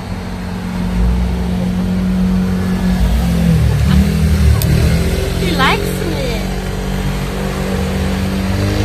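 A motor scooter's engine hums as it passes close by.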